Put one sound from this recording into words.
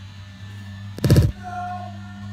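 A soccer ball is kicked hard on a grass field.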